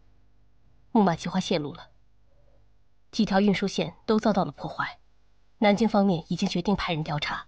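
A man speaks calmly and seriously nearby.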